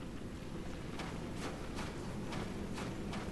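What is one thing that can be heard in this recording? Footsteps crunch slowly across the ground.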